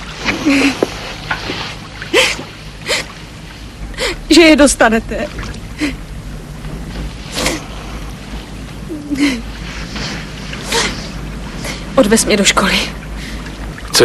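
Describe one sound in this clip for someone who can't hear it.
A woman sobs and cries nearby.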